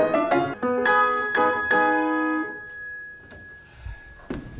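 A piano plays a few chords that ring out and fade in a large echoing hall.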